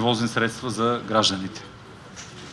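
A man speaks into a microphone over a loudspeaker outdoors.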